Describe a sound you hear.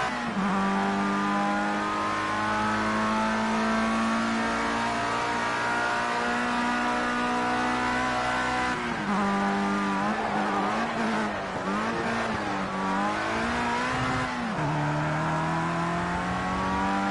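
A racing car engine screams at high revs, its pitch rising through each gear.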